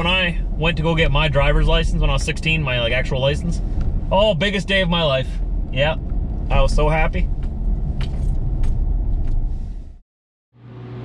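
A car engine hums with a low rumble of tyres on the road.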